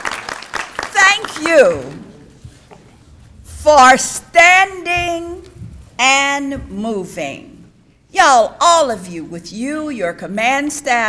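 A woman speaks calmly through a loudspeaker in a large hall.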